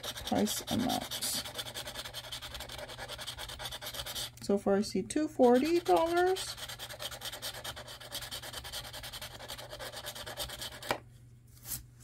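A plastic scraper scratches rapidly across a card.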